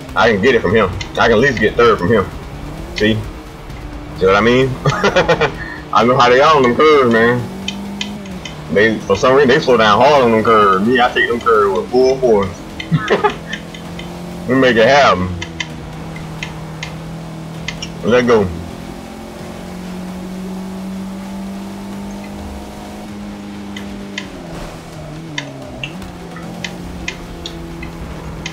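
A car engine hums and revs as the car races along.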